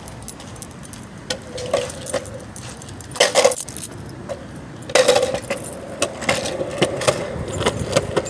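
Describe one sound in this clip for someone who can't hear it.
Skateboard wheels roll and clatter over concrete.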